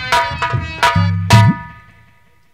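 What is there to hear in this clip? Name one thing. A drum is struck a few times.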